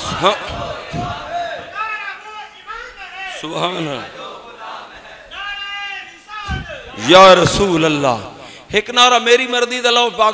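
A man chants loudly through a microphone over loudspeakers in an echoing hall.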